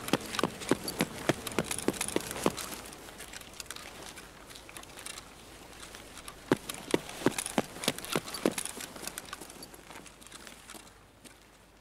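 Footsteps thud at a steady walking pace on a hard floor.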